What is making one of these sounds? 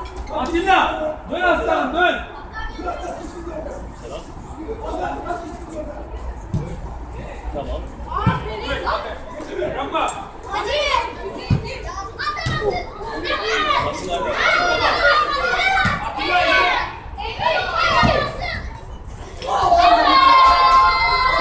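Children shout and call out across an outdoor pitch.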